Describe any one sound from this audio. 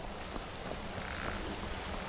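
Water splashes down in a rushing fall.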